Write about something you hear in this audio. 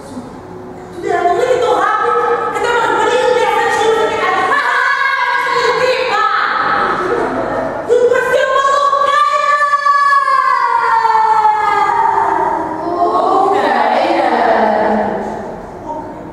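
A young woman sings loudly through a microphone in an echoing hall.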